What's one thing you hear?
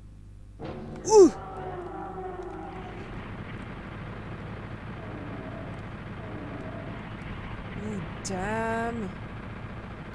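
Monsters roar and growl in a video game.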